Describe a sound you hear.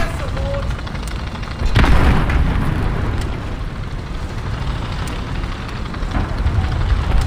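A tank engine rumbles low and steadily.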